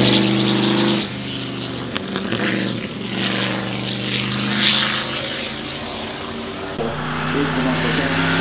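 A vintage racing car engine revs and crackles as the car drives away around a bend.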